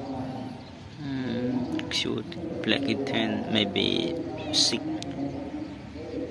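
A cat meows loudly nearby.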